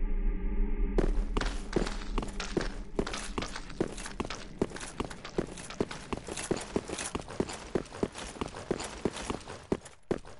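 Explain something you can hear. Armoured footsteps clank steadily on stone.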